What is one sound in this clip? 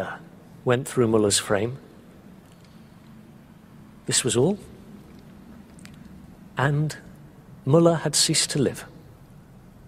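A man speaks calmly and haltingly, close by.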